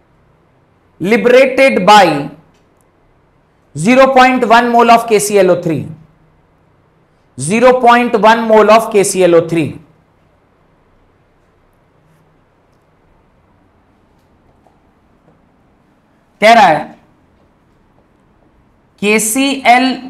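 A man speaks with animation through a close clip-on microphone, in short bursts with pauses.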